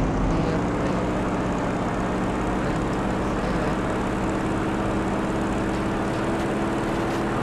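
A propeller plane engine drones steadily and loudly.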